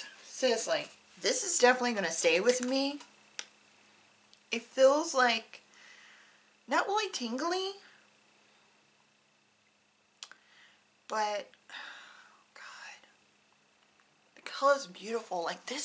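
A woman speaks calmly in short phrases, close to the microphone.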